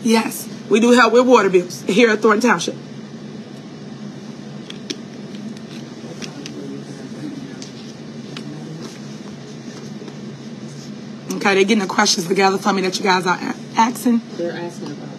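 A woman speaks close to the microphone with animation.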